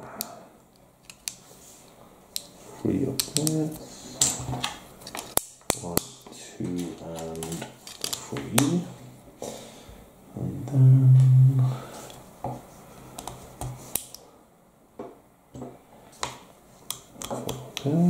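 Plastic toy bricks click and snap together.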